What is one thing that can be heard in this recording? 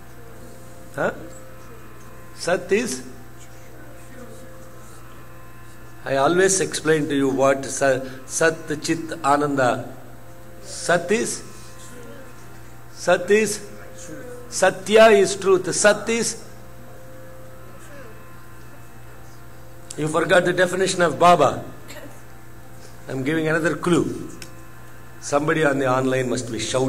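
A man speaks into a microphone in bursts, with long pauses, in a calm, measured voice.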